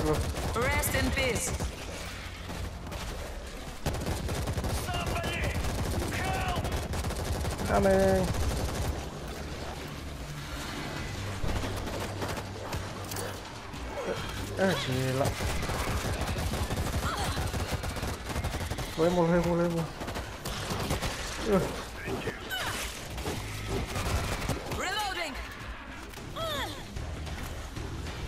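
Zombies snarl and shriek close by.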